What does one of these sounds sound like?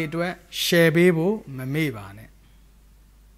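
A man sings a short melodic phrase close by.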